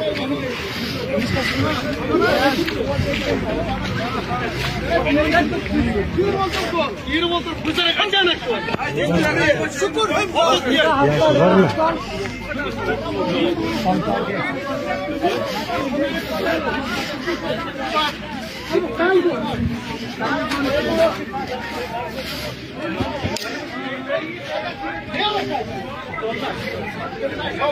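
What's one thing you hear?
A crowd of men talk over one another outdoors.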